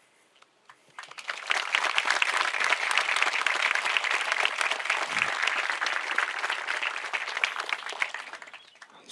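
A crowd claps and applauds outdoors.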